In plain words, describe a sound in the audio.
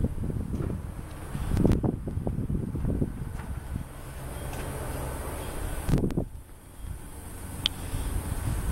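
Wind rumbles against the microphone.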